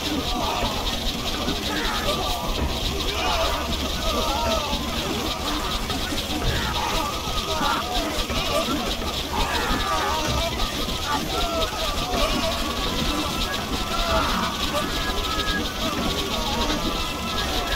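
Many swords clash in a dense, ongoing battle.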